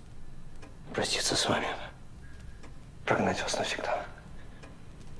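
A man with a deep voice speaks slowly and gravely nearby.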